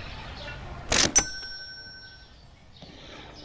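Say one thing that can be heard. A cash register chimes once.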